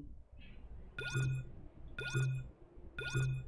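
A countdown chime rings once each second.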